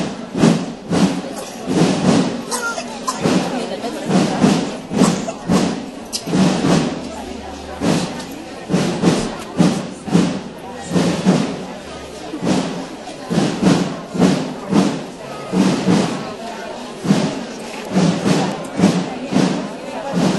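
Many footsteps shuffle along a paved street.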